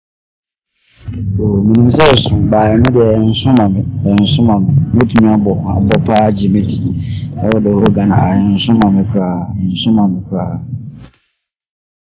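A young man speaks calmly and close to a microphone.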